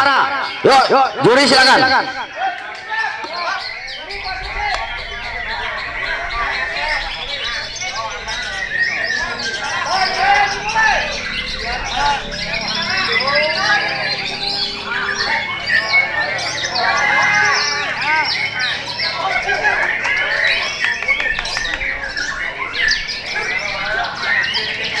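A songbird sings close by with quick, varied chirps and warbles.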